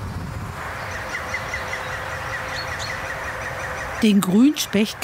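A small bird chirps nearby outdoors.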